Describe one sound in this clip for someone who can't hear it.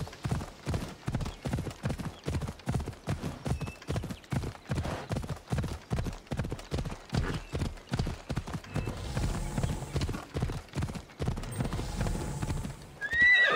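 Hooves pound rapidly as a horse gallops over the ground.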